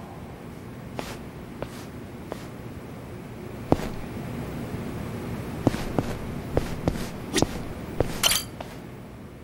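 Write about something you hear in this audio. Footsteps tap on a hard floor in a large echoing space.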